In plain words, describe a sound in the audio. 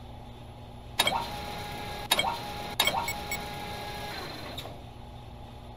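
Game buttons click, each with a short ringing chime.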